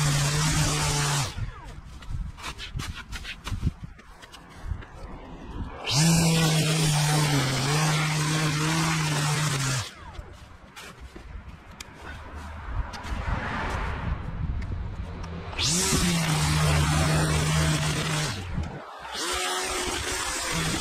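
A string trimmer whines loudly in bursts, cutting grass.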